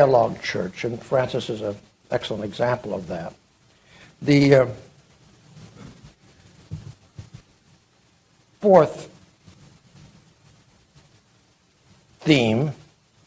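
An elderly man speaks slowly through a microphone in a large room, with long pauses.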